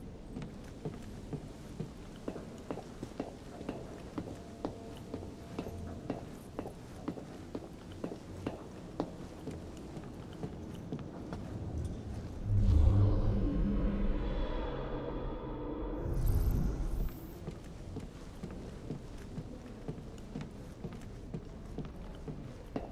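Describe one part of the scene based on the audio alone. Footsteps tread steadily across wooden floorboards.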